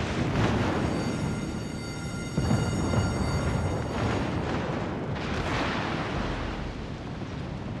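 Shells explode with deep rumbling blasts.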